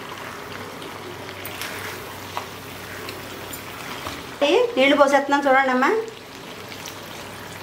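A metal spatula scrapes and stirs food in a clay pot.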